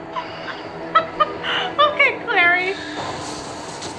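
A young woman laughs close to a microphone.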